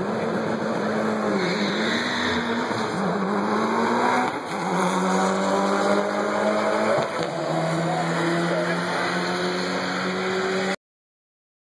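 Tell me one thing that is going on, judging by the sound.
A car engine roars loudly as the car accelerates hard, its pitch climbing and dropping with each gear change.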